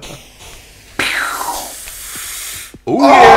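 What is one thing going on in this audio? A rocket whooshes through the air.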